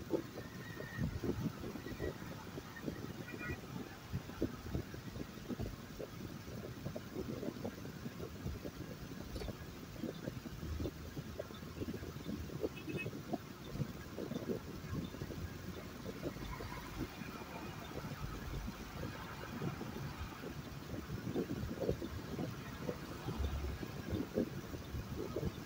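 A car's engine rumbles low as it drives.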